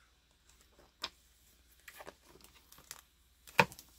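Comic books slide and tap against each other.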